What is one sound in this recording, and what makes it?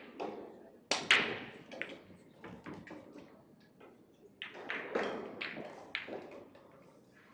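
Pool balls scatter, clacking against each other and the cushions.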